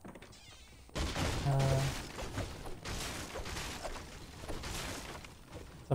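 A pickaxe strikes a wooden wall with hard knocks.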